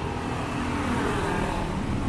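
A motor scooter rides by.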